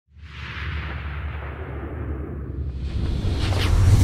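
A rocket engine roars loudly at liftoff.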